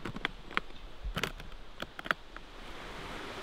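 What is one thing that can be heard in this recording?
Metal latches on a case click shut.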